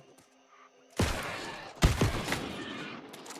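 A heavy weapon strikes with a loud burst of impacts.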